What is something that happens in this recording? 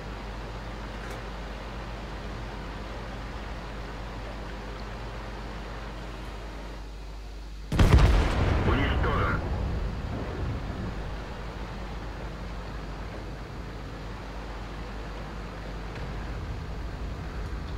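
Water splashes around a tank wading through a river.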